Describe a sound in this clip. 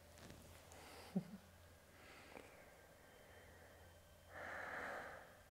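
A woman speaks softly and calmly close by.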